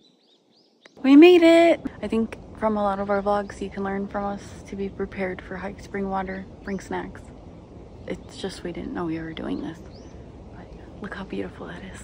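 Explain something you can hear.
A young woman speaks close up with animation.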